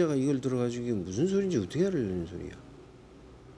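A middle-aged man speaks calmly, close by.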